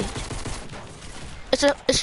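A gun fires in a video game.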